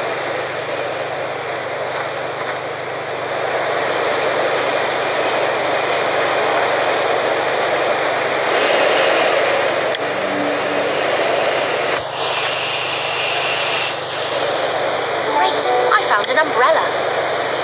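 A snowstorm wind howls steadily outdoors.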